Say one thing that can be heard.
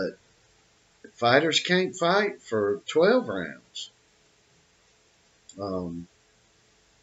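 An elderly man speaks calmly and close to a microphone, in short phrases.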